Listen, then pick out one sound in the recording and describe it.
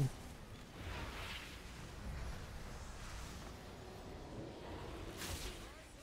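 Weapons strike and swoosh in a fast game fight.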